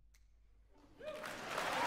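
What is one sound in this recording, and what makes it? An audience breaks into applause.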